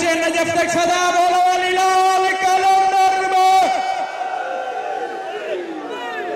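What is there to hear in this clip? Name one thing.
A young man chants loudly with long held notes through a microphone and loudspeaker.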